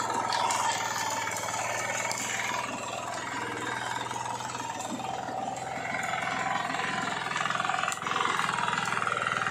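Tiller blades churn through loose soil.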